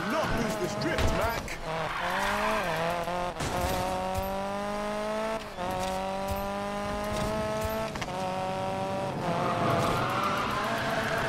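A car engine roars, revving up and down as gears change.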